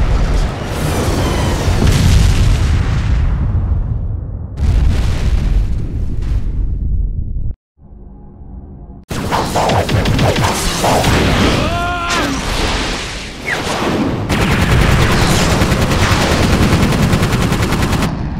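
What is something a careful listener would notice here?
Laser beams blast and crackle loudly.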